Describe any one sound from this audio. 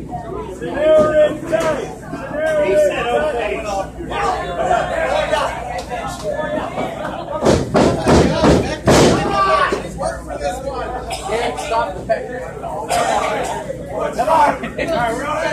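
A crowd of spectators chatters and shouts nearby in an echoing hall.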